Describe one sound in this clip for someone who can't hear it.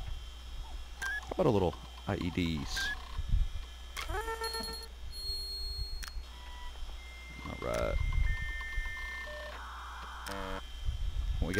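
Short electronic beeps and chimes sound as menu items are chosen.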